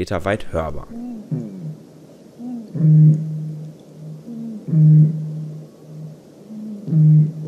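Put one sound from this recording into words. A bird gives deep, booming hoots, repeated every couple of seconds.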